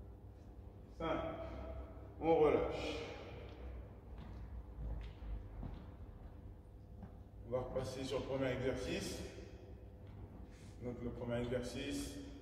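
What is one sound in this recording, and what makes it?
A man speaks calmly and clearly in an echoing hall.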